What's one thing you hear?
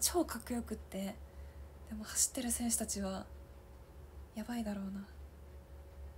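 A young woman speaks softly and close up, in short bursts.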